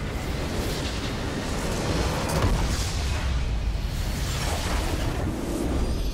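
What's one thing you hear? A deep explosion booms as a structure is destroyed.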